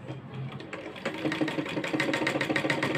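A sewing machine runs with a rapid, steady clatter.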